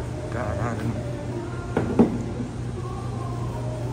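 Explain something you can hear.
A glass bottle clinks down on a table.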